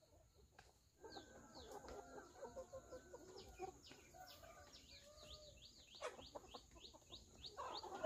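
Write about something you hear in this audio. Chickens cluck and chirp.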